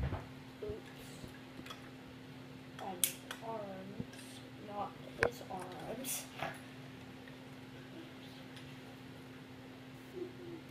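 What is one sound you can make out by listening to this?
Plastic toy pieces click and clatter together.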